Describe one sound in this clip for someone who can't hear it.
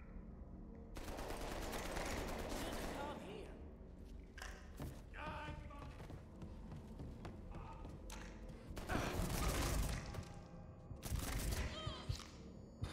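Gunfire rings out in loud bursts.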